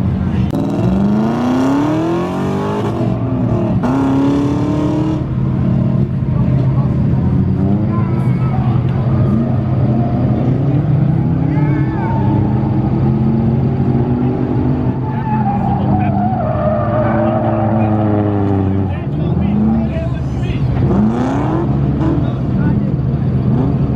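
A car engine revs hard, rising and falling again and again.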